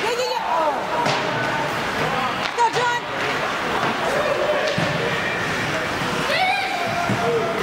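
Skates scrape across the ice in a large echoing rink.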